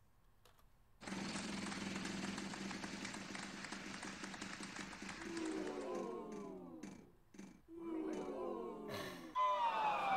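A prize wheel clicks rapidly as it spins.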